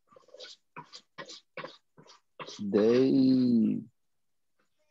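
A man speaks over an online call, in short words and then a long drawn-out word.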